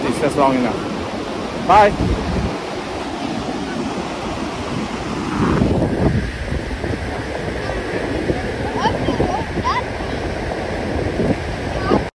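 Waves wash gently onto the shore.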